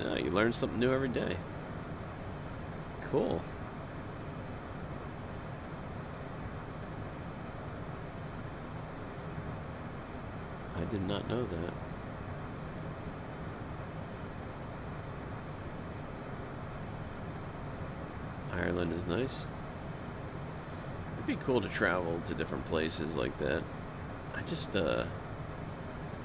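A man speaks calmly and briefly into a close microphone, with pauses.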